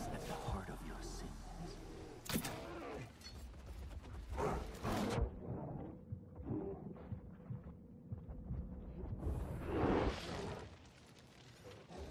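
A large bear growls and roars close by.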